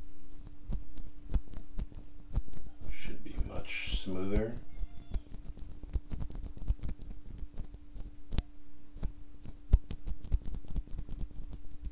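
A small plastic part clicks repeatedly between fingers, close by.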